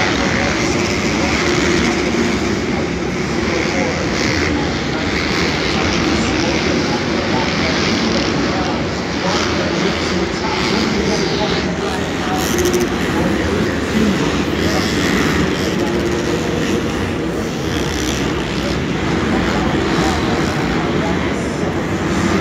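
A crowd of spectators murmurs and chatters in a large echoing arena.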